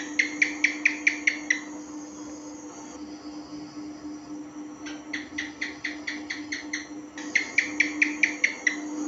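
A gecko calls with a quick series of sharp chirping clicks.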